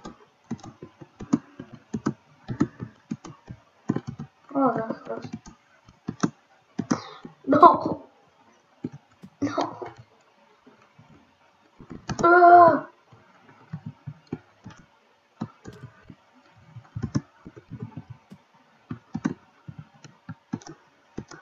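Footsteps tap on stone blocks in a video game.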